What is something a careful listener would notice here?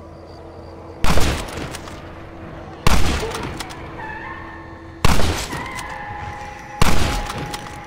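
A rifle fires loud shots, each echoing away.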